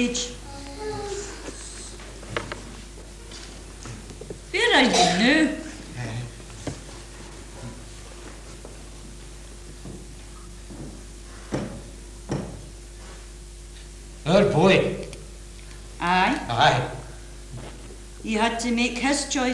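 A man speaks calmly, heard from a distance in a hall.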